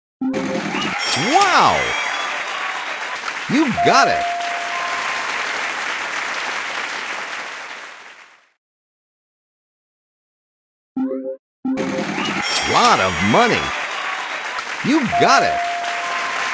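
A bright jingle of swooping electronic tones plays for a win.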